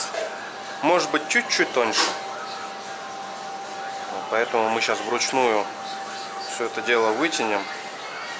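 Dough rolls softly back and forth on a metal surface.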